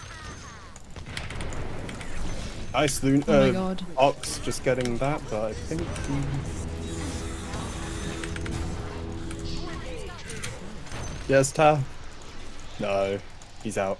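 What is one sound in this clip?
Game effects crackle and boom during a fight.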